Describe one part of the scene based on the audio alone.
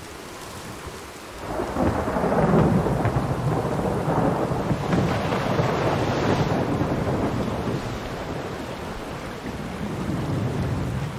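A stream of water rushes and splashes.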